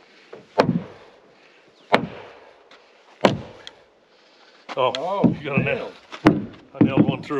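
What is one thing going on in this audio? A mallet knocks sharply on wood.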